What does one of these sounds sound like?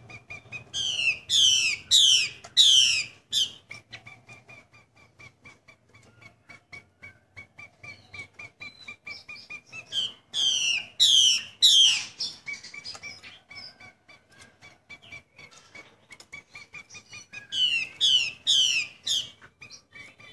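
A caged songbird sings loud, rising whistled phrases in bursts.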